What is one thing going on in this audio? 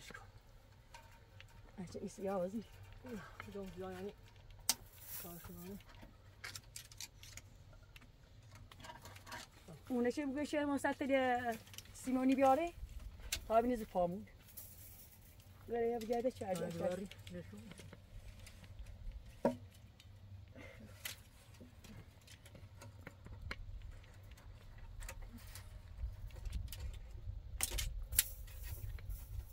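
Dry reeds rustle and click as they are handled and tied.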